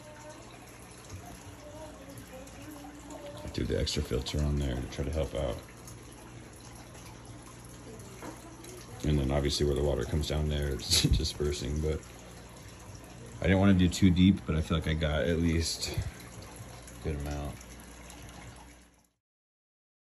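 Water trickles steadily from an aquarium filter.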